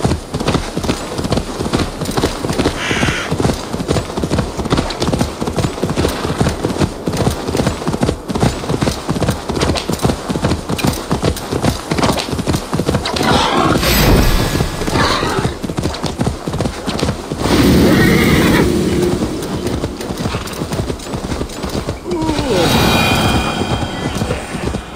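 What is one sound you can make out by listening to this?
Hooves thud quickly as a horse gallops over grass and dirt.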